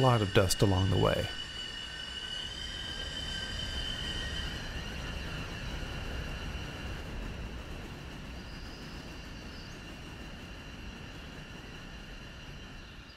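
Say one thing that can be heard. A steam locomotive chugs along with a low rumble.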